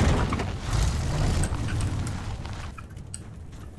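A loud explosion rumbles and fades.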